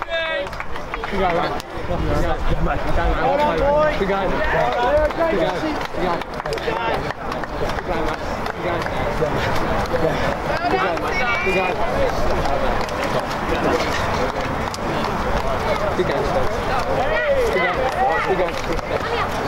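Hands slap together as boys shake hands.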